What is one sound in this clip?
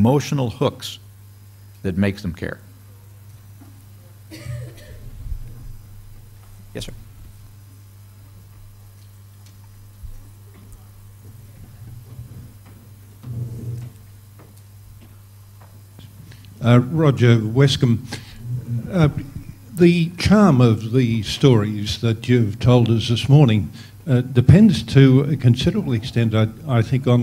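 An older man speaks calmly into a microphone, heard through a loudspeaker in a large room.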